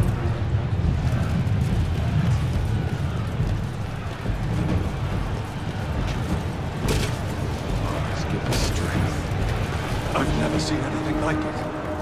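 Metal armour clinks and rattles with each stride.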